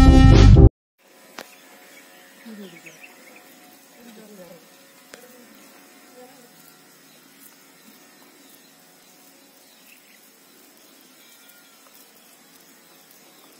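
Eggshell crackles softly as a man peels a boiled egg by hand.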